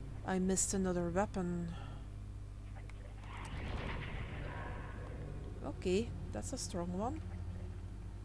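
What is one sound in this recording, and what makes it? A young woman speaks casually into a microphone, close by.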